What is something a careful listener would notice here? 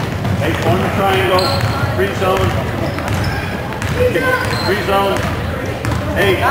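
A basketball bounces on a hard floor, echoing.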